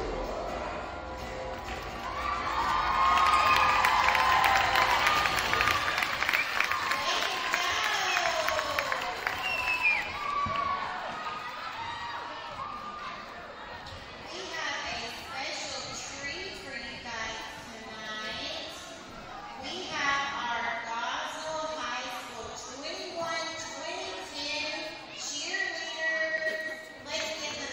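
Many children and adults chatter in a large echoing hall.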